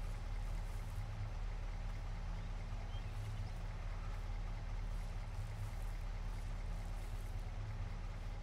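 A pickup truck's engine idles with a low, steady rumble.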